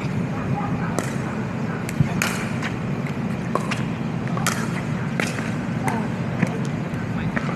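Paddles strike a plastic ball with sharp pops, back and forth.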